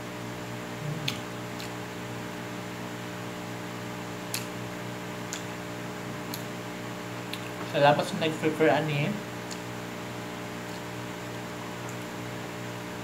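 A fork clinks against a bowl.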